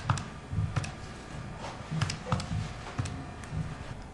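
Fingers tap the keys of a pocket calculator with soft clicks.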